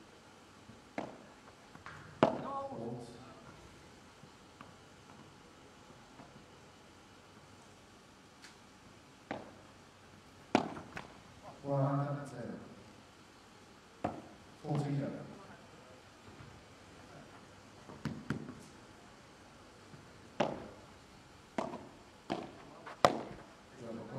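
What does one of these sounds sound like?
Padel rackets strike a ball with sharp pops, echoing off glass walls.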